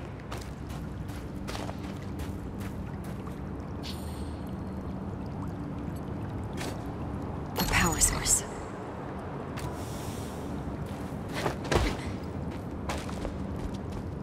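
Footsteps crunch on snow and gravel.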